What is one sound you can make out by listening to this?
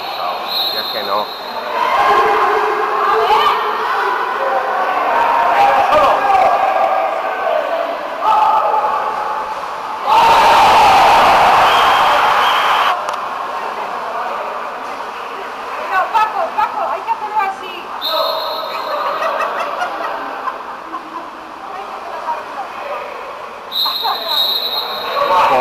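Swimmers splash and thrash in the water of a large echoing pool.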